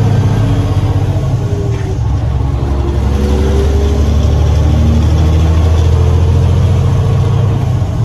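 Tyres roll over a wet road with a steady hiss.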